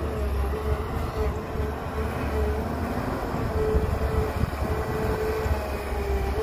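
A diesel excavator engine rumbles steadily close by.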